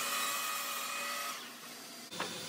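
A power saw hums and winds down.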